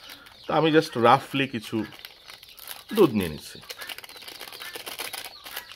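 A plastic packet crinkles and rustles in hands.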